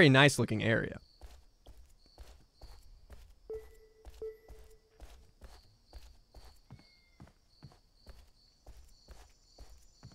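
Footsteps tap steadily on a hard street.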